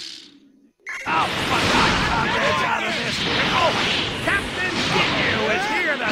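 Loud energy blasts whoosh and crackle during a fight.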